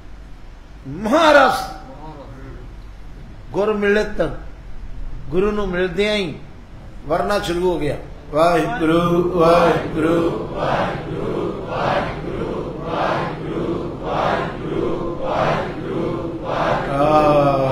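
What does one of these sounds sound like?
An elderly man speaks and chants with feeling into a microphone.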